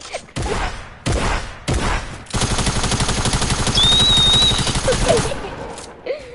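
Gunshots fire in short bursts and then in a rapid stream.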